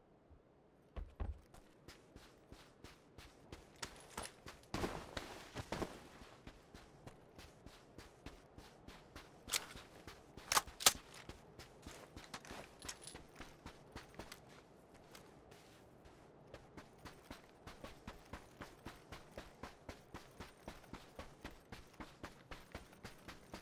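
Footsteps crunch quickly over dry dirt.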